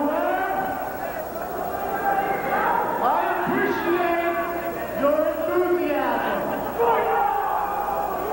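A man speaks loudly and with animation into a microphone over loudspeakers.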